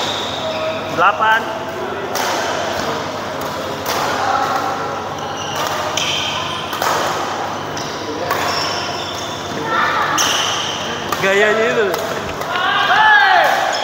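Players' shoes squeak sharply on the court floor.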